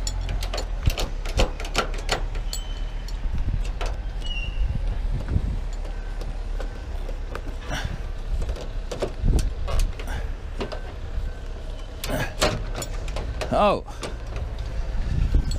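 A ratchet strap clicks sharply.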